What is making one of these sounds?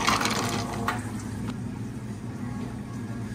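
Water pours into a cup of ice.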